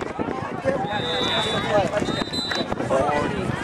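A referee's whistle blows shrilly in short blasts.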